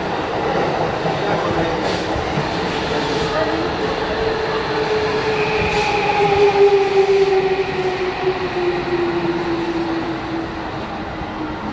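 A train rumbles along a platform with a whining motor as it pulls away.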